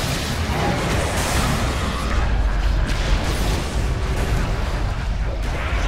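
Fire roars and crackles.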